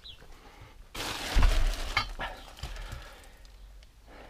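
A stack of clay bricks knocks down onto a hard surface.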